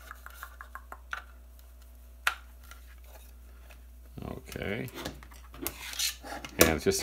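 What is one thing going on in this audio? Plastic clicks and rattles as a charger is handled close by.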